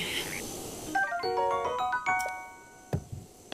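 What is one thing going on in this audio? A short bright jingle of rising chimes plays.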